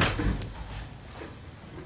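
A door handle clicks as a door opens.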